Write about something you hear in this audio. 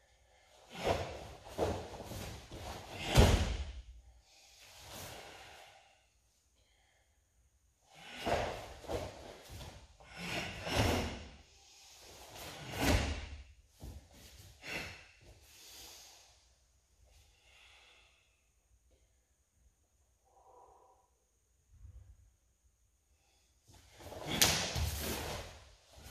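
Bare feet thump and slide on a padded mat.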